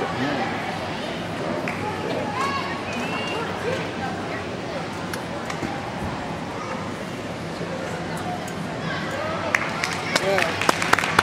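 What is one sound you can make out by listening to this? Feet thump on a balance beam.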